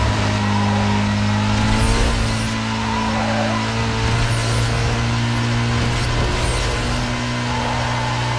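Tyres rush over the road at high speed.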